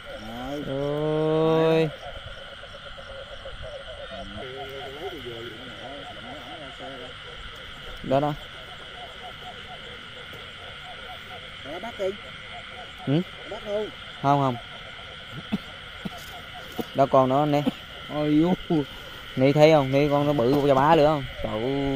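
A frog croaks loudly and repeatedly, close by.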